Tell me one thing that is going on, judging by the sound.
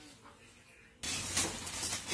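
Seeds rattle and patter into a plastic bag.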